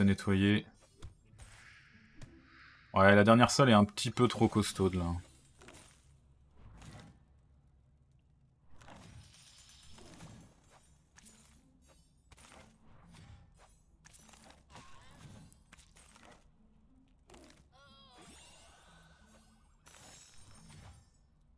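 Small game sound effects of fighting chime and thud in quick bursts.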